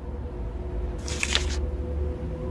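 A paper page flips over with a quick rustle.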